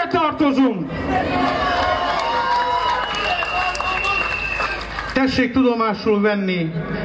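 A man speaks loudly through a microphone and loudspeakers outdoors, with a slight echo.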